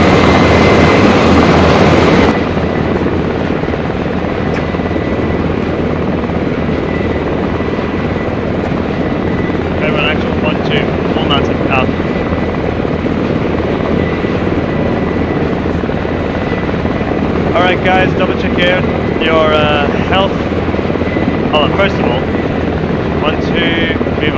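A vehicle engine rumbles steadily while driving over rough ground.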